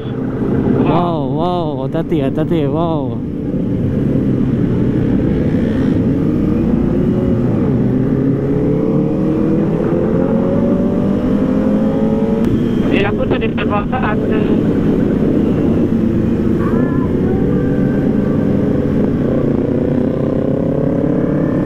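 A motorcycle engine hums steadily and revs up and down close by.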